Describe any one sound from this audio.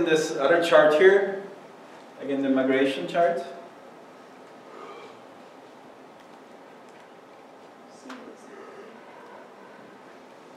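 A man speaks into a microphone in a large room, with pauses.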